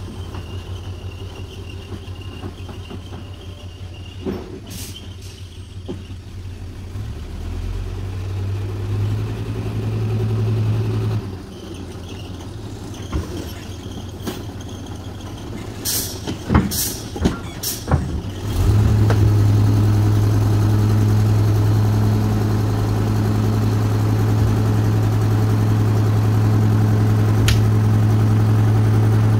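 A diesel truck engine rumbles and revs hard.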